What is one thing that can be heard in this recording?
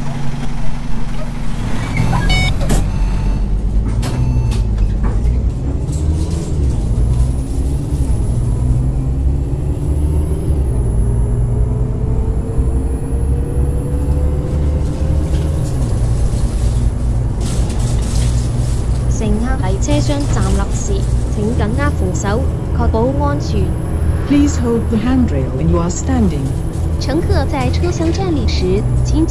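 A bus engine rumbles low and rises in pitch as the bus speeds up.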